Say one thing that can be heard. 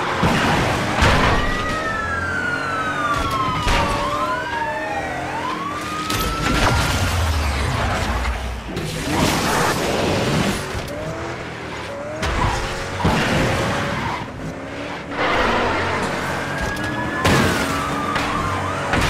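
A sports car engine roars and revs at high speed.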